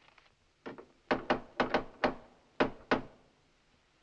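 A man knocks on a wooden door several times.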